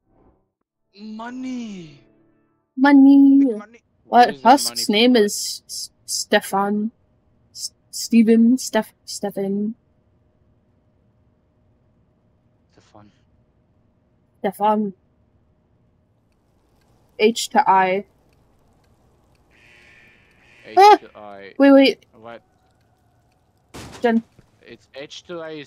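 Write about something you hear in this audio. A young woman talks with animation into a microphone, in short bursts.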